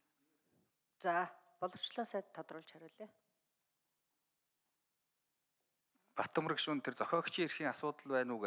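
A middle-aged woman speaks calmly through a microphone.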